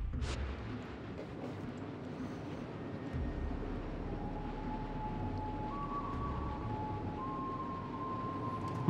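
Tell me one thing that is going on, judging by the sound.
A ship's engine rumbles low and steady as the hull churns through water.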